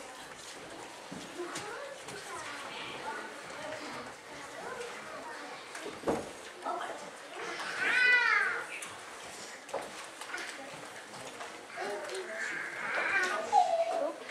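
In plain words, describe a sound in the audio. Children chatter and murmur in an echoing hall.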